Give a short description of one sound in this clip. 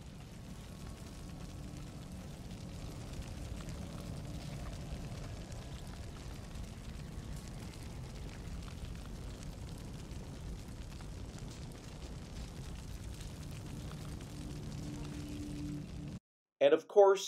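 A fire crackles and roars close by.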